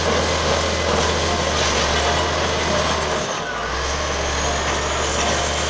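A bulldozer engine rumbles loudly and steadily close by.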